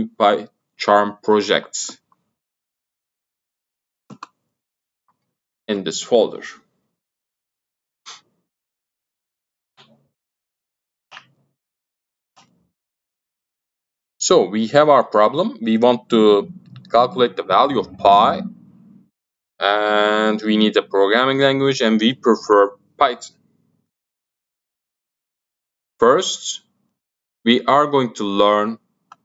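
A man talks calmly and close to a microphone, in bursts with pauses.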